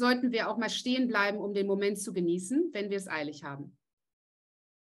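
A woman speaks with animation, close to a microphone in an online call.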